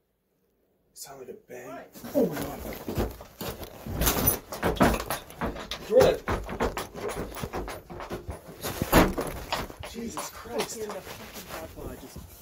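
Something knocks and clatters against wooden boards close by.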